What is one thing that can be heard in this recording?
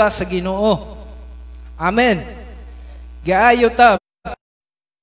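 A young man speaks with animation through a microphone.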